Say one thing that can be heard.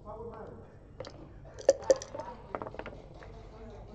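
Dice rattle and clatter onto a board.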